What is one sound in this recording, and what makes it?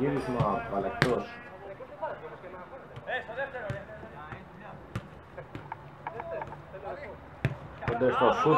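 A football is kicked with a sharp thud.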